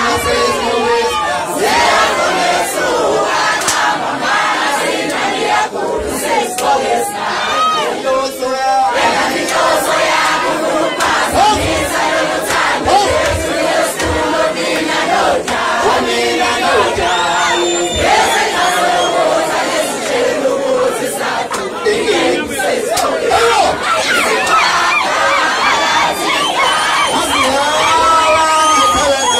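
People in a crowd clap their hands.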